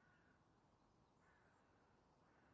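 A young woman asks a question quietly.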